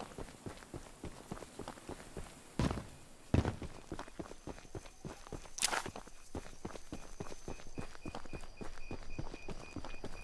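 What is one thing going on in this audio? Footsteps crunch steadily through dry grass.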